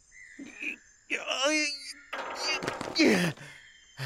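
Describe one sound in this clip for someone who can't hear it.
Stone cracks and breaks apart.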